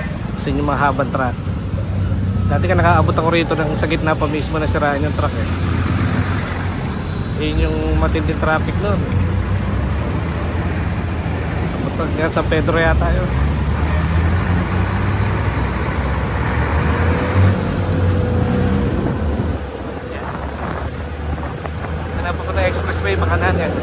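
A motorcycle engine hums steadily at close range.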